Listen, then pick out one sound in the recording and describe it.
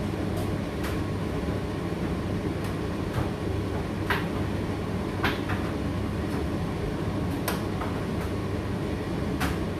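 A condenser tumble dryer hums and rumbles as it runs a drying cycle.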